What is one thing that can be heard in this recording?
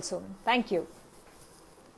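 A woman speaks a few quick words close to a microphone.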